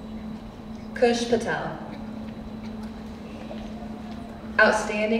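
A woman announces over a loudspeaker in a large echoing hall.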